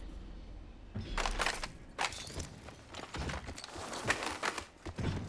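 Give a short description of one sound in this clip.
Items click and rattle as they are picked up.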